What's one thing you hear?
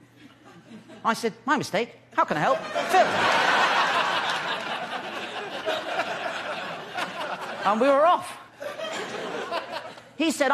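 A young man speaks with animation through a microphone to an audience.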